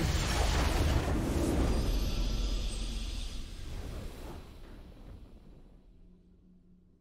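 A triumphant victory fanfare swells and fades away.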